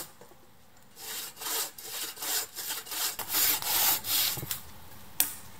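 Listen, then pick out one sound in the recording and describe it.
A hand saw cuts through a dry branch in quick strokes.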